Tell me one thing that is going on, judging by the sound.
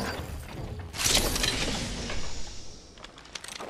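A metal crate lid bursts open with a hiss.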